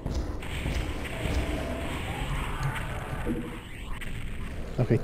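Gunshots and explosions from a video game fire in quick bursts.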